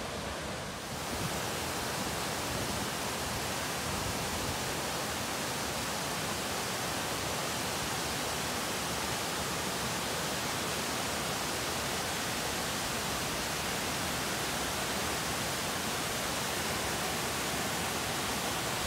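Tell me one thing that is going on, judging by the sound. Water rushes loudly over rocky rapids close by.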